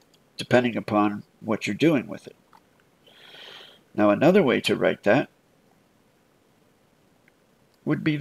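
A man speaks calmly into a microphone, close by, in short bursts with pauses.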